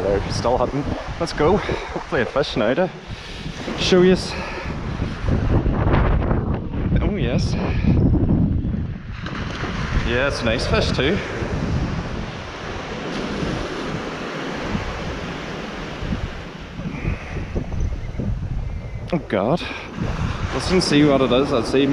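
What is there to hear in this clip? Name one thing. Wind blusters across an open beach.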